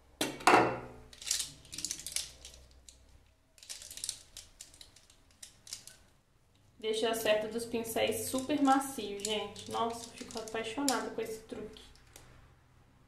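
Makeup brushes clatter and click against each other.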